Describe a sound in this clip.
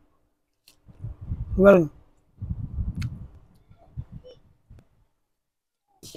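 A young man eats, chewing and crunching food.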